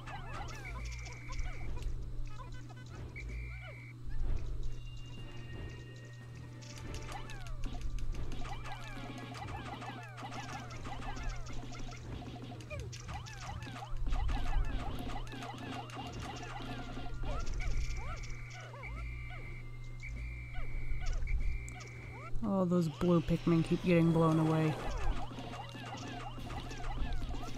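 Many small creatures chirp and squeak in high, quick voices.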